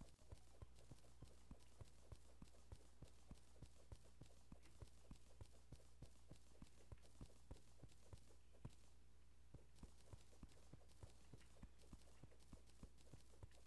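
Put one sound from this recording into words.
A pickaxe chips rapidly and steadily at stone blocks.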